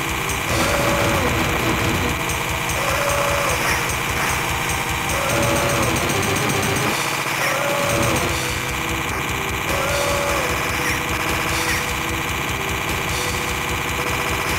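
Electronic game music plays with a driving beat.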